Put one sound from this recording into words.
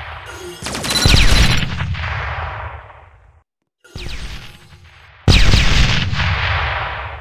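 Loud magic blasts burst and roar, then fade away.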